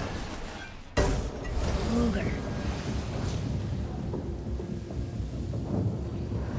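A magical burst of energy booms and then roars steadily.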